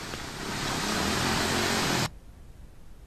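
Rushing water sloshes across a flooded road.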